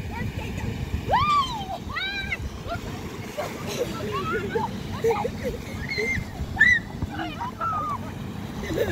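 A young girl shrieks excitedly.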